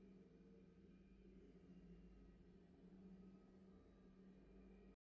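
Triumphant game victory music plays.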